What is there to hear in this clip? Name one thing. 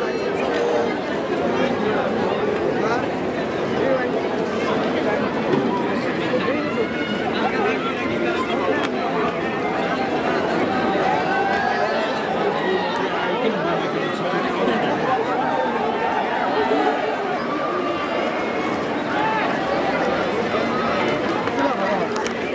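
Many people cheer and whoop loudly.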